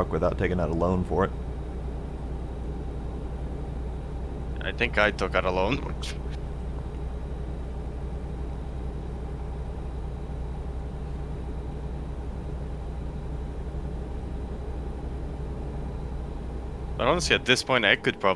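A truck engine hums steadily at cruising speed.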